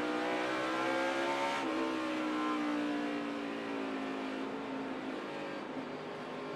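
Tyres hiss on a wet track.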